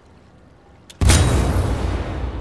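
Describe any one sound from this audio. A rifle fires a loud, rapid burst of shots.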